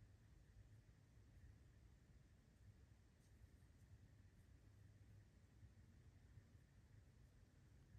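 A crochet hook softly rustles and pulls through yarn.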